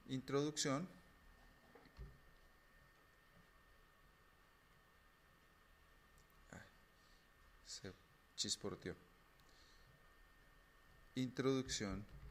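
A man speaks calmly into a microphone, in short bursts with pauses.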